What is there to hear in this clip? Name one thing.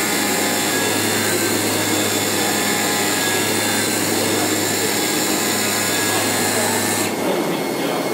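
A cutting machine hums and whirs steadily as its head moves.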